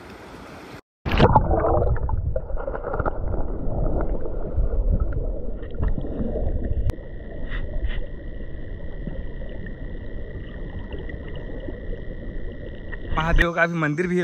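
Water rumbles and gurgles, muffled as if heard underwater.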